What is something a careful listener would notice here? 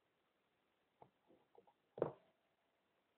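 A fork clinks against a dish.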